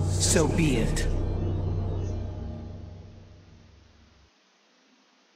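A deep electronic hum drones and slowly fades away.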